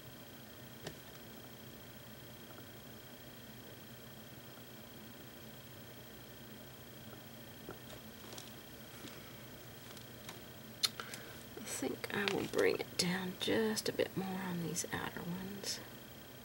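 A paintbrush softly strokes across a painting surface.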